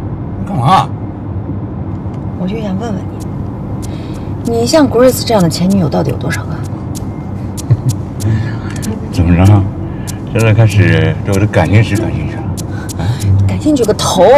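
A young man answers playfully and laughs.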